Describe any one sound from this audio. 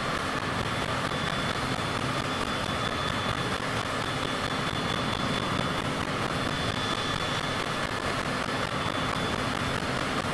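A jet engine roars steadily as an aircraft flies.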